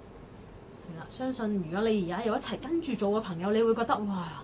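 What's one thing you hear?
A woman speaks nearby in a slow, sing-song, rhythmic voice.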